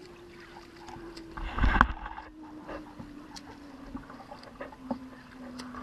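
A swimmer's arms splash through the water nearby.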